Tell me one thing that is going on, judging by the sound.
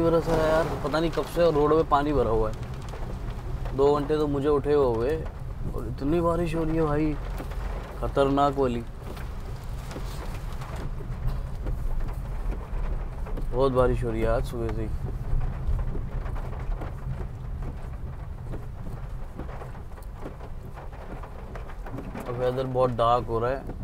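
A young man talks calmly and close by, in short bursts with pauses.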